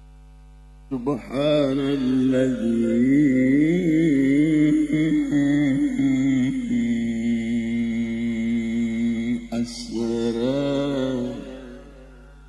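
An elderly man chants melodiously through a microphone, with long held notes.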